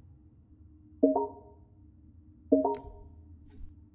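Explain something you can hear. A short electronic chime sounds twice.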